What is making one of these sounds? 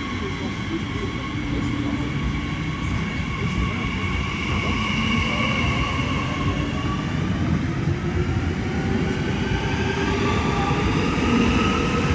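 A train's electric motor whines, slowly rising and shifting in pitch.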